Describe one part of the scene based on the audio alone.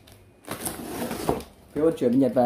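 Packing tape peels off a cardboard box with a ripping sound.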